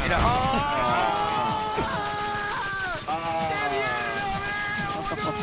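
A young man laughs heartily into a close microphone.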